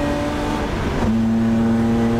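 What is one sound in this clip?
A gear shift thuds sharply as the engine drops in pitch.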